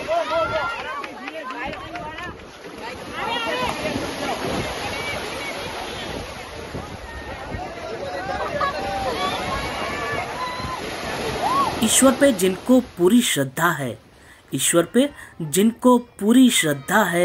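Swimmers splash through shallow water.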